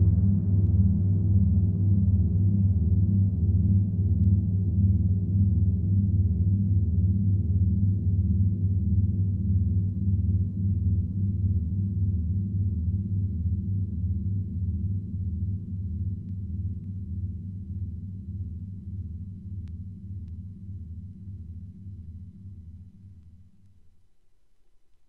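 Music with a deep, thumping beat plays from a spinning record and slowly fades out.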